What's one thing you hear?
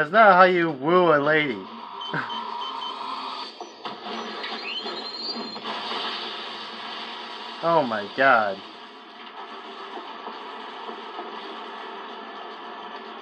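Video game sound effects and music play from a television speaker.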